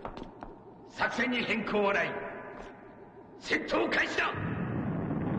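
A man answers in a deep, angry voice.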